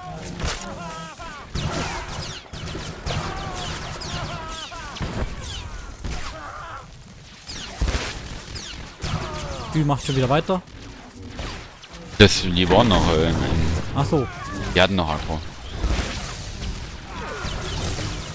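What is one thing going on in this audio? Energy weapons zap and crackle.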